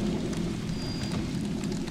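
Flames roar and crackle close by.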